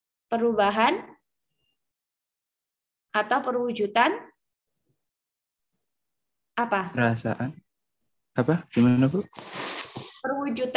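A woman speaks calmly in short bursts over an online call.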